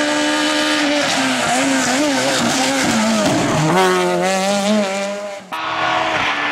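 A rally car engine revs up and down sharply through gear changes.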